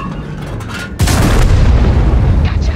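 A shell explodes with a loud blast.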